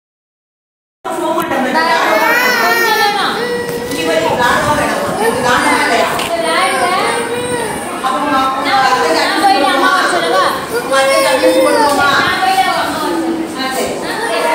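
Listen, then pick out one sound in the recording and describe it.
Several young children chatter and call out around.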